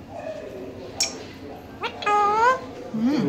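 A parrot screeches loudly, close by.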